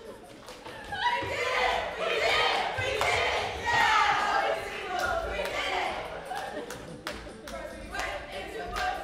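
A group of performers joins in singing.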